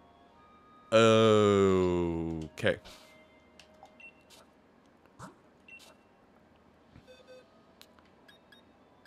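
Short electronic chimes and beeps from a video game sound.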